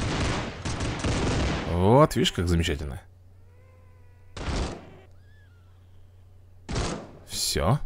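Cartoonish gunshots crackle in quick bursts.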